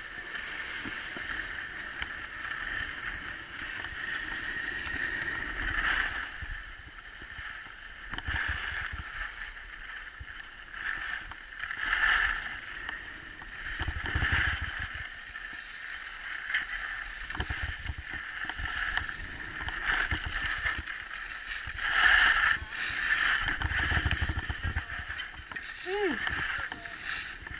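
Wind rushes past close by.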